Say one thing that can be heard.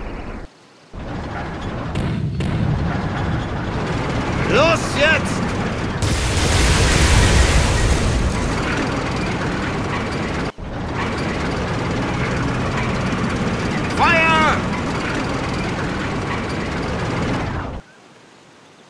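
Tank engines rumble and clank.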